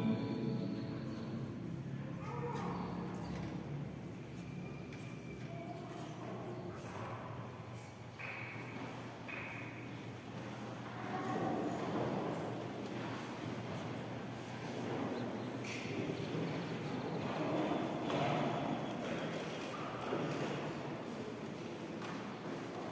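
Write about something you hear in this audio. A crowd of adults murmurs and talks quietly in a large echoing hall.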